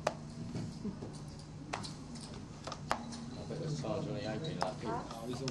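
Poker chips click together.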